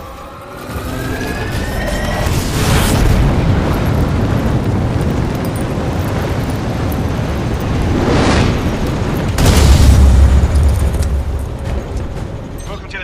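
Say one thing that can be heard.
Wind roars loudly in a rushing fall through the air.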